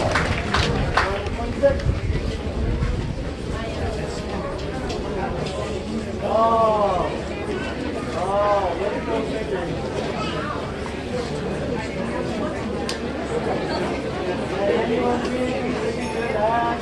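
A crowd of adults chatters in the background.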